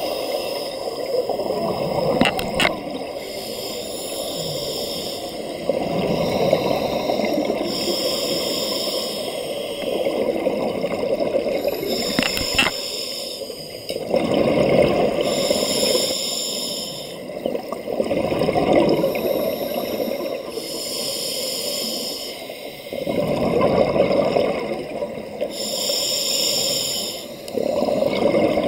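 Bubbles rush and gurgle as a diver breathes out underwater.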